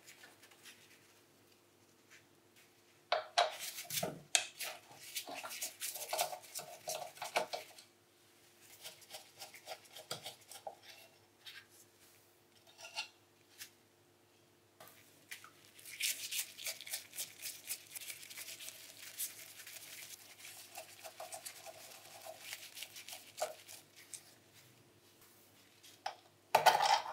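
Metal parts clank and knock as they are handled.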